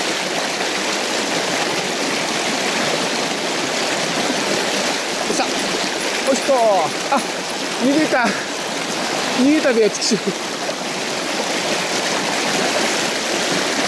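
A fishing reel whirs as its handle is cranked.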